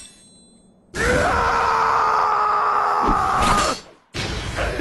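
A man screams loudly.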